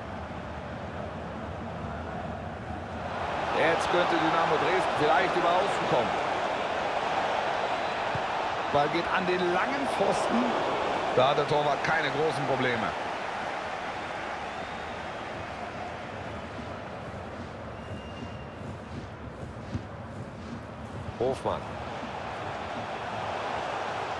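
A large stadium crowd roars and chants throughout.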